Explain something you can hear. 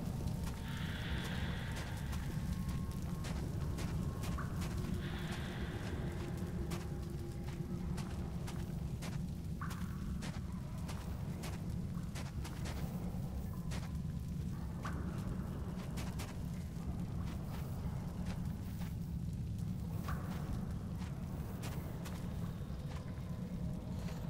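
Footsteps crunch slowly over rubble and grit.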